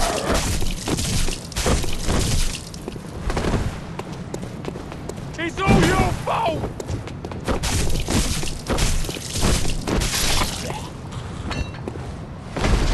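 Blades slash and strike flesh with wet, heavy hits.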